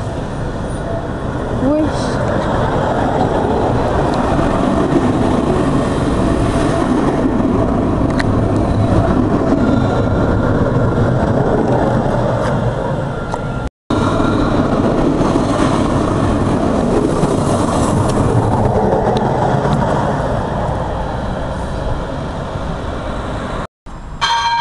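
A tram rumbles and whirs past close by.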